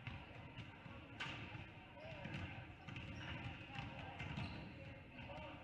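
A crowd murmurs in the stands.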